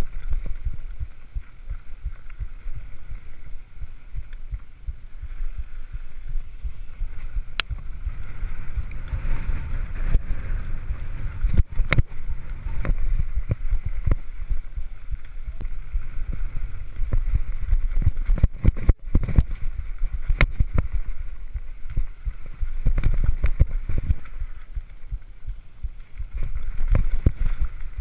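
A bicycle frame and chain rattle and clunk over bumps.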